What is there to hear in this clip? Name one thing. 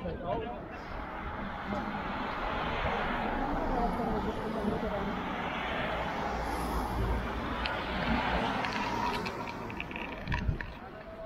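A van drives past on the road.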